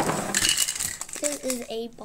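A plastic bag crinkles in a hand.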